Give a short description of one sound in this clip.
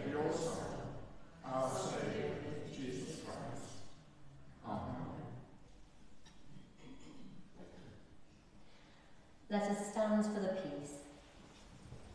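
An elderly man reads aloud in a large echoing hall.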